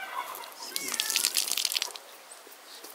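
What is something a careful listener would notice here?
Water pours from a metal jug.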